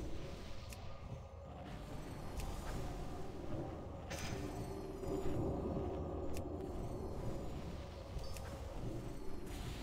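Magic spells crackle and whoosh in a battle.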